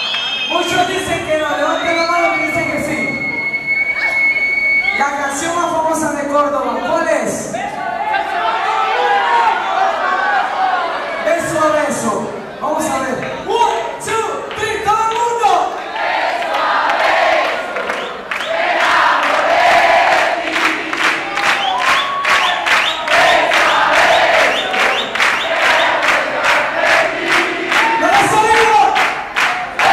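A young man sings loudly through a microphone in a large hall.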